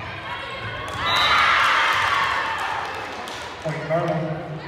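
A crowd cheers and shouts after a point.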